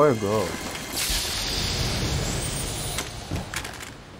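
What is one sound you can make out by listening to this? A treasure chest opens with a shimmering chime.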